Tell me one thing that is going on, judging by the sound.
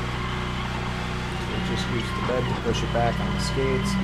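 A tow truck's tilting bed lowers with a hydraulic whine.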